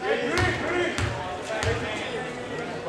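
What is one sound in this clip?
A basketball bounces on a wooden floor a few times.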